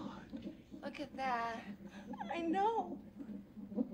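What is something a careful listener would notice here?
A young woman exclaims with delight.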